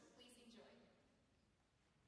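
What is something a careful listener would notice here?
A young woman speaks briefly into a microphone in a large hall.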